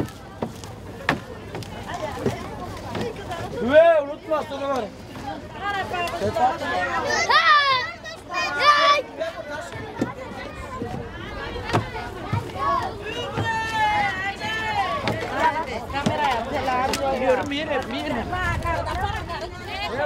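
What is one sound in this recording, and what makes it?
Footsteps clatter on the steps of a bus.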